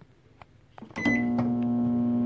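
A microwave oven beeps once.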